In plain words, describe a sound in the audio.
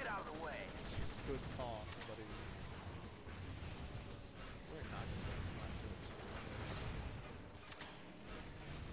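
Gunfire and blasts pop sharply in a game.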